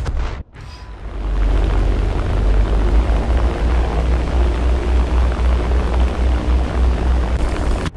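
Bomber propeller engines drone steadily.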